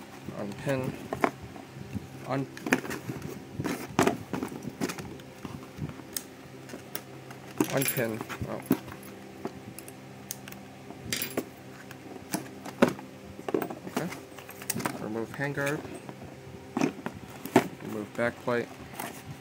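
Plastic parts click and knock together.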